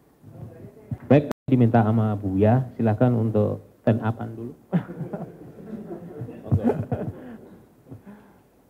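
A man speaks into a microphone with animation, heard through a loudspeaker in an echoing room.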